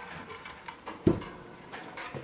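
A metal stove door clanks shut.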